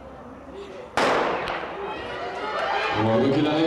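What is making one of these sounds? Spectators cheer and shout loudly as runners pass.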